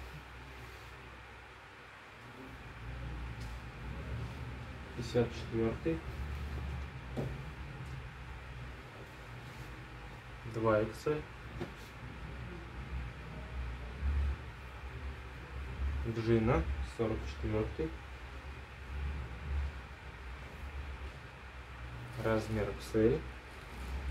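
Fabric rustles and swishes as clothes are lifted and laid flat.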